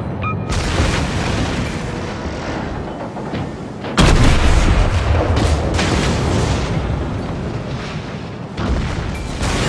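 Heavy battleship guns fire with deep, rumbling booms.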